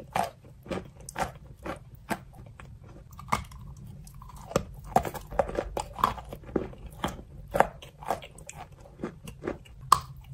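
Foil crinkles in a young woman's fingers close to a microphone.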